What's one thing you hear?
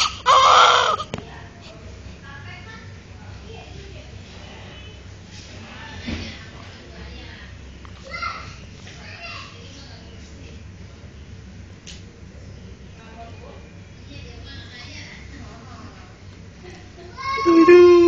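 A newborn baby cries loudly up close.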